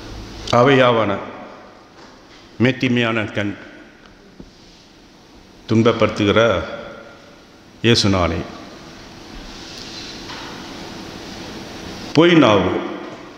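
A middle-aged man speaks slowly and solemnly into a microphone, in short phrases with pauses, in a room with some echo.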